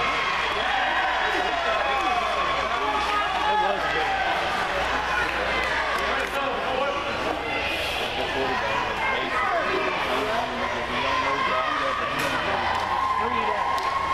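Young players call out to each other on the field.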